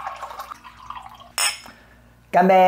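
Water pours from a tap into a glass.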